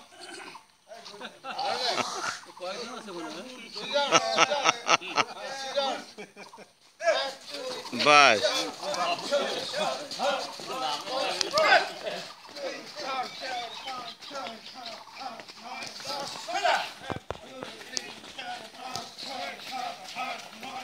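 Middle-aged men talk nearby outdoors.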